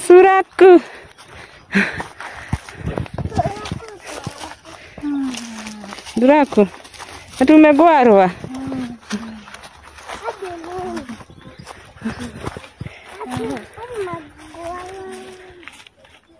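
Children talk and call out close by.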